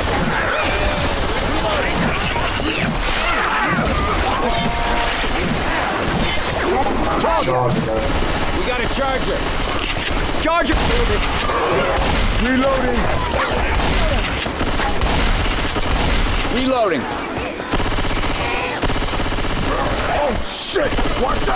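Zombies snarl and shriek close by.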